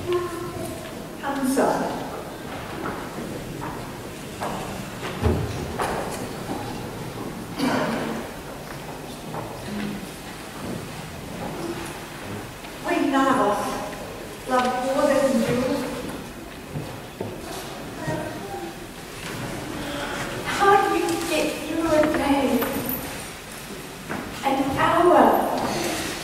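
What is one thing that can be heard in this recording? Women speak on a stage, heard from a distance in a large echoing hall.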